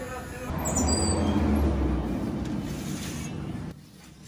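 A metal baking tray slides onto a rack with a rattle.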